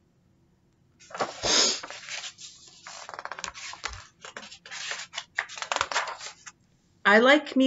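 Book pages rustle and turn.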